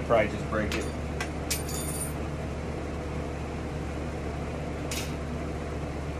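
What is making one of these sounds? Small glass pieces clink and tap.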